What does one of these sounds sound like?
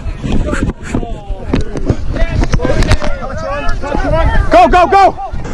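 Young men shout and call out with energy outdoors.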